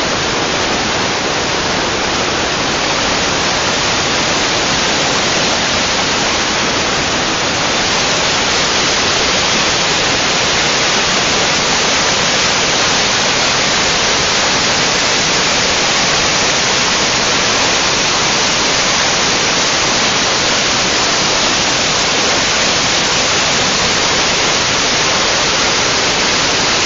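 A mountain stream rushes and roars loudly over rocks.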